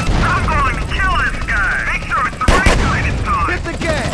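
A fire roars after an explosion.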